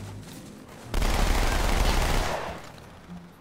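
Two submachine guns fire in rapid bursts.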